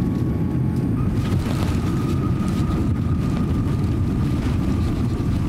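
Wheels rumble and thump on the runway as the airliner touches down.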